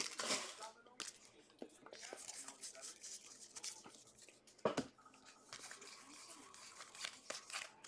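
Trading cards rustle and slide against each other as they are flipped through.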